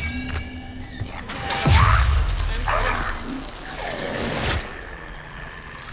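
A robotic creature groans and strains as if struggling.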